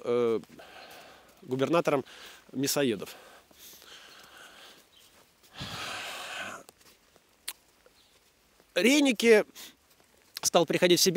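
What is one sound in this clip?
A man speaks with animation close to a microphone, outdoors.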